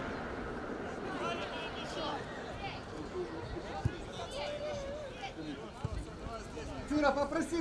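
Men shout to each other outdoors in the open.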